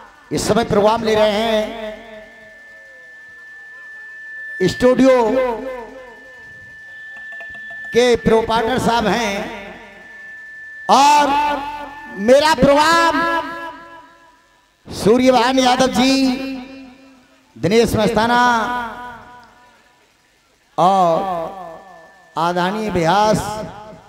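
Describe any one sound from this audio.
A man sings loudly into a microphone in short phrases, through a loudspeaker with echo.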